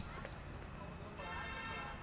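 A man walks past with footsteps on stone paving.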